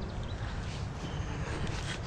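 Grass and leaves rustle as a hand brushes through them.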